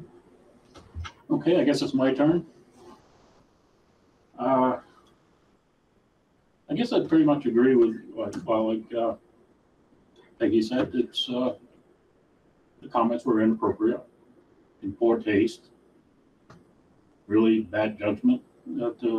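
A man speaks in turns in a quiet room, heard through a microphone.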